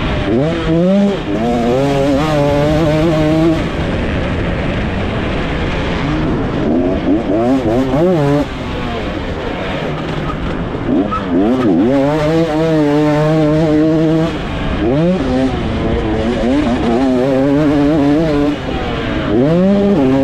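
A motorcycle engine revs loudly up and down.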